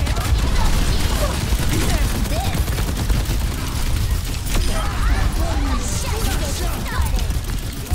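Small guns fire in rapid bursts.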